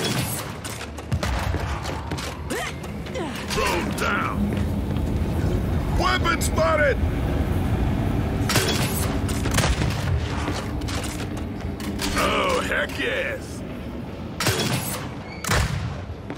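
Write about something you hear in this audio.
Gunfire bursts out in loud, rapid shots.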